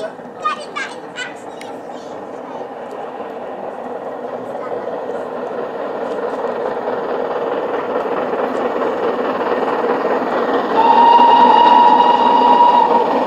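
A steam train approaches, its rumble growing steadily louder.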